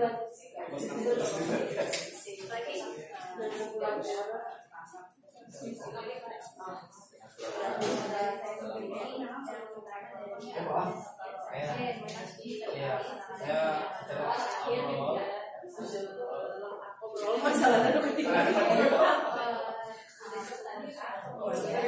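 Several men and women talk at once in small groups, in a room with some echo.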